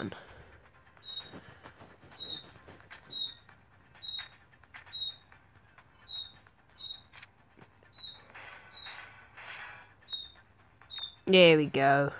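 Short electronic chimes tick in a steady rhythm.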